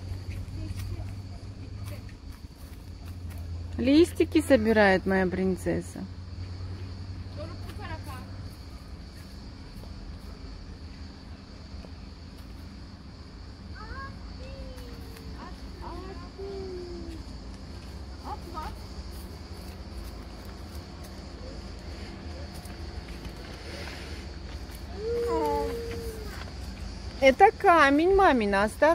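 Footsteps crunch on dry leaves and gravel.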